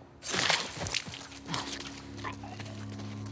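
Heavy blows thud against a body.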